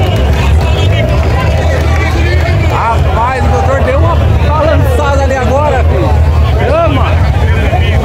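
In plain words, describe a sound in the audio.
A crowd of people chatters and cheers nearby.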